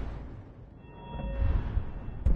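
A soft magical chime rings briefly.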